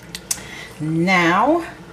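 A spoon stirs through thick, creamy pasta with a soft squelch.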